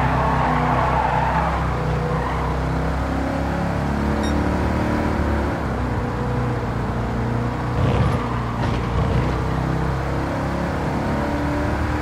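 A racing car engine roars steadily, shifting pitch as the car speeds up and slows.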